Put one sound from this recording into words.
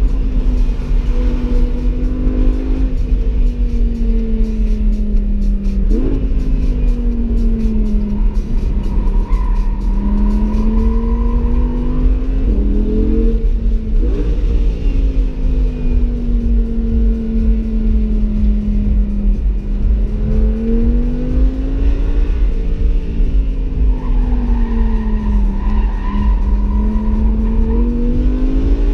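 A car engine revs up and down hard as the car races around a track.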